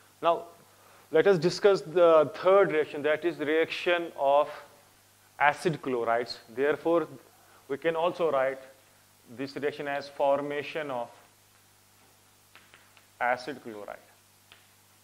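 A man speaks calmly and clearly, as if explaining.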